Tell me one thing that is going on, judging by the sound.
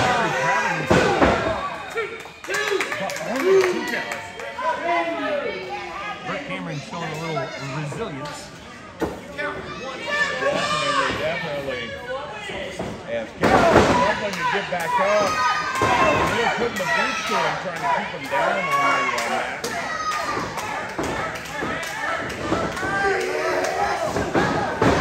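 A crowd of spectators shouts and cheers nearby in an echoing hall.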